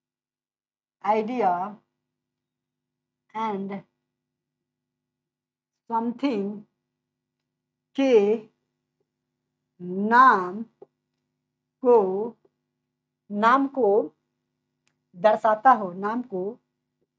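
A young man speaks clearly in short phrases, as if teaching, close to a microphone.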